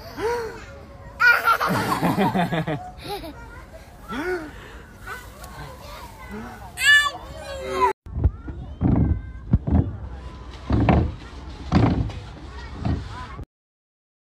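A toddler babbles and squeals.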